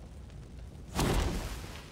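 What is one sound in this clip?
A fiery blast bursts with a loud whoosh.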